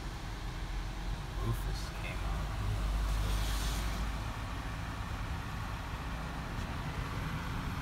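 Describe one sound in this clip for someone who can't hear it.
A car engine hums low and steady, heard from inside the car.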